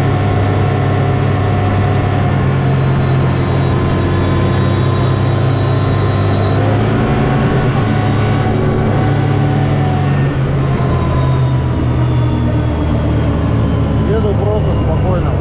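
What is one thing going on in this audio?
An engine drones loudly and steadily up close.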